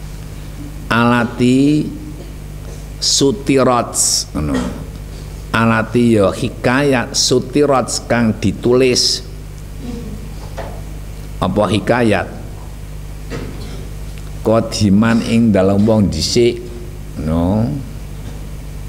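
A young man recites aloud in a slow chanting voice, close by.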